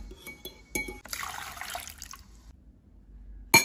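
Water pours and splashes onto a strainer.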